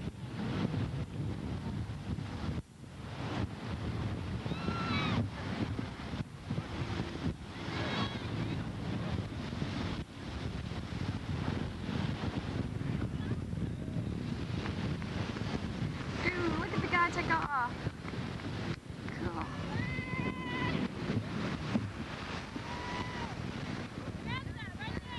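Wind blusters outdoors, rumbling across the microphone.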